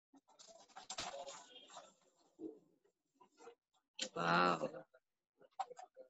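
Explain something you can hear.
Paper rustles as drawings are handled.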